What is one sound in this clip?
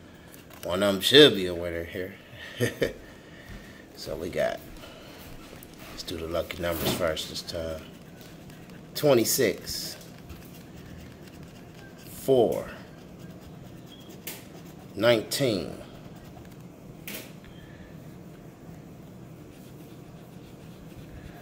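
A coin scratches across a card.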